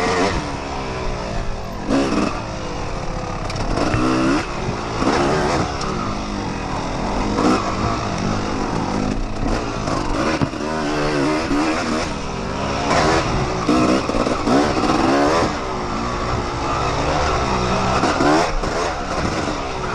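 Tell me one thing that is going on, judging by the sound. A dirt bike engine revs up and down loudly and close by.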